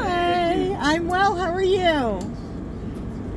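A middle-aged woman sings loudly up close.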